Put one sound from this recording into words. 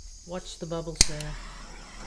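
A handheld torch igniter clicks sharply.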